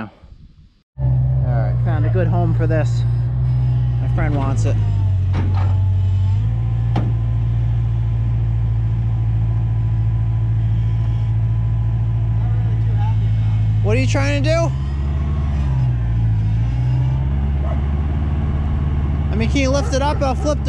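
A skid steer loader's diesel engine runs loudly with a steady low drone, its pitch shifting now and then.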